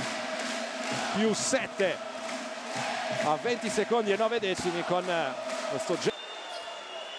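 A crowd cheers and claps loudly in a large echoing hall.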